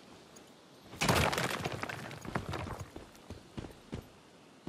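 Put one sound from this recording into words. Loose rocks crumble and clatter to the ground.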